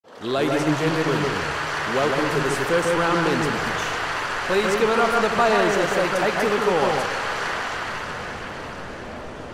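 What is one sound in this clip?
A crowd claps and cheers loudly, then fades away.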